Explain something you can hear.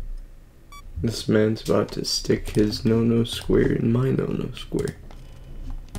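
A young man speaks loudly and with animation into a close microphone.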